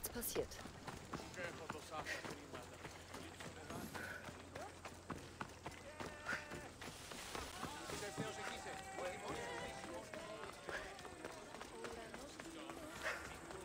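Footsteps run over stone paving.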